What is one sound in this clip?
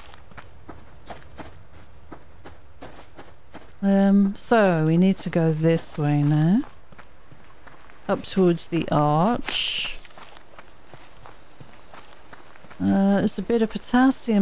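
Footsteps tread through grass and brush.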